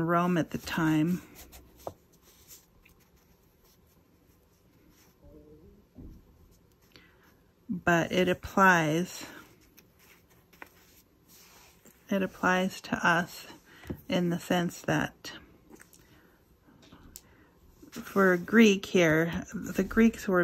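Paper rustles softly as hands smooth and shift a page.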